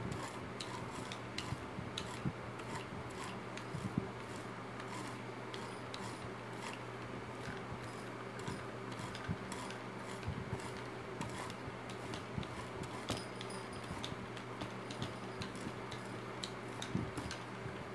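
A brush dabs and taps softly on a board.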